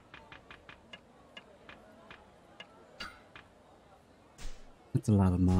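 Menu selection clicks tick quickly in a game.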